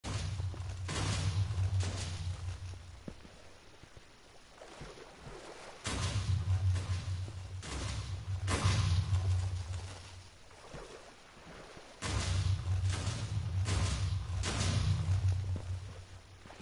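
Loud explosions boom and rumble in repeated bursts.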